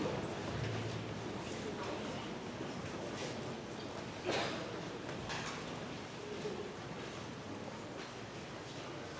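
A large audience murmurs and chatters.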